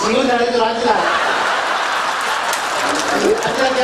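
A large crowd laughs and cheers.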